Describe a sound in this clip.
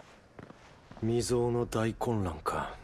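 A man speaks calmly and closely, in a low voice.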